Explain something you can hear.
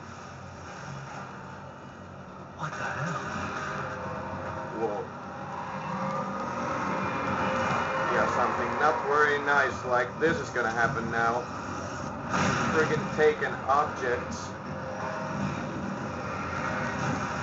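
Gunshots crack through a television speaker.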